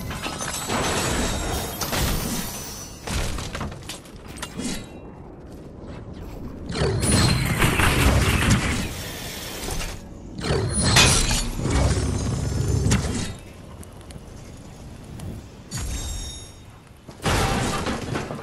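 Building pieces snap into place with quick knocks.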